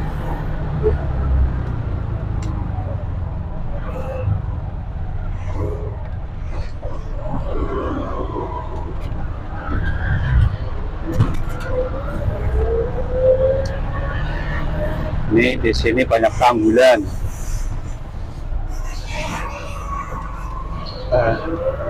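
An auto-rickshaw engine putters and rattles steadily up close.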